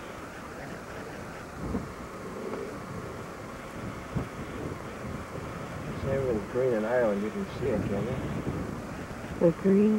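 Wind gusts across open ground outdoors.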